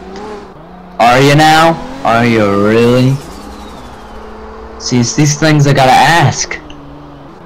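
Car tyres screech loudly on tarmac during a skid.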